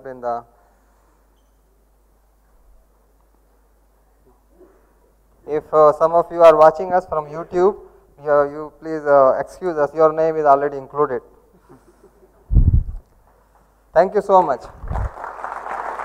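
A man speaks into a microphone over a loudspeaker in a large hall.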